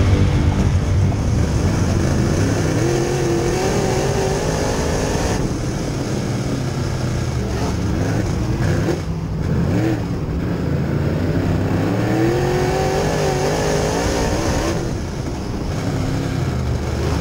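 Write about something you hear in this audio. Other race car engines roar nearby.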